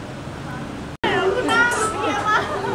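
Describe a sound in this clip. Young women talk casually at close range.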